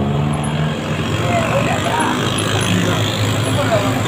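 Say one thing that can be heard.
Motorcycle engines buzz past.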